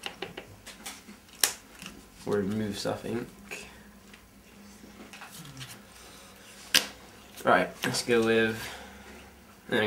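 Playing cards tap and slide softly on a tabletop mat.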